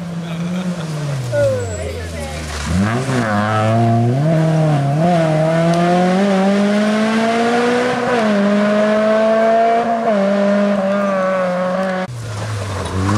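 A rally car engine revs hard and roars away into the distance.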